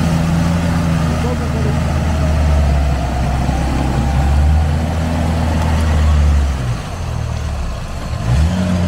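An engine rumbles and revs as an off-road vehicle churns through mud.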